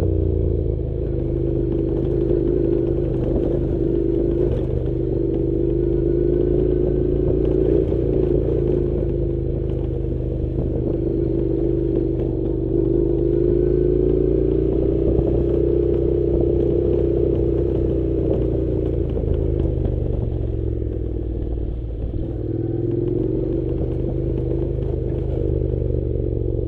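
A motorcycle engine hums steadily close by, rising and falling gently as it rides.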